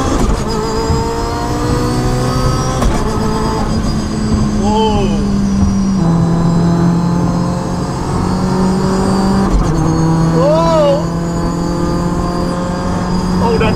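A car engine revs hard and climbs through the gears as the car speeds up.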